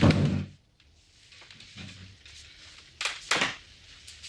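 A wool sweater rustles as a woman pulls it on.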